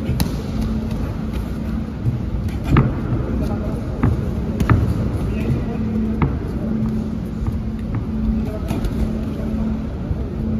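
Shoes squeak and shuffle on a canvas floor.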